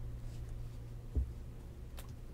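A card taps on a table.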